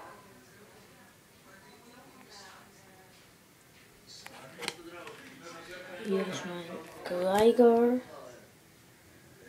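Cards rustle and slap as they are handled.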